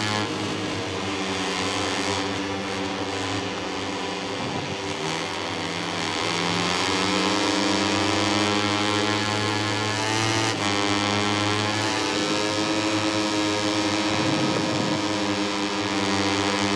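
A racing motorcycle engine whines loudly, its pitch rising and falling as it shifts gears.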